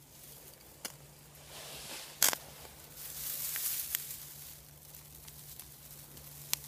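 Dry grass rustles and crackles as hands handle it.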